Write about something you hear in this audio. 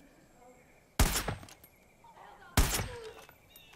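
Sharp rifle shots crack.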